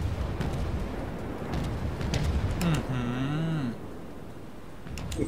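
A warship's engines rumble low and steady.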